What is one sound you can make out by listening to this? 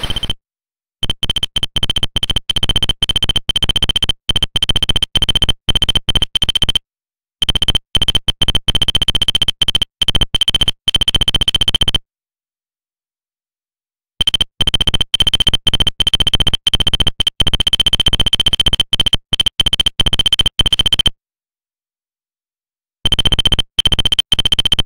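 Rapid electronic blips chatter in quick bursts as game text prints out.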